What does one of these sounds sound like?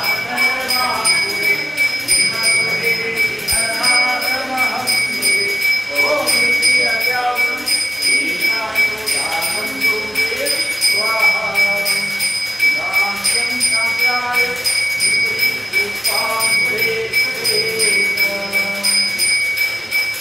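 A man chants softly nearby.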